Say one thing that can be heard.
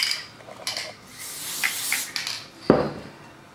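An aerosol can sprays in short hissing bursts.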